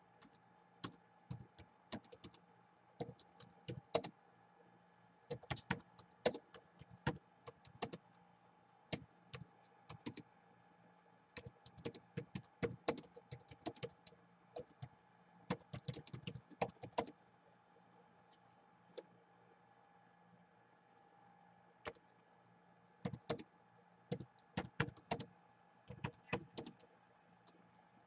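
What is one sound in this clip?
Fingers tap quickly on a laptop keyboard in bursts of clicks.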